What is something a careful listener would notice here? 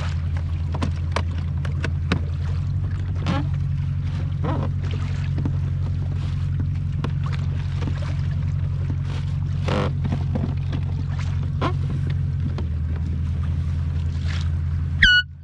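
Small clicks and rattles come from gear being handled on a kayak.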